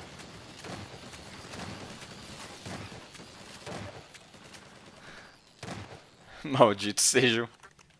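A shotgun fires in loud blasts.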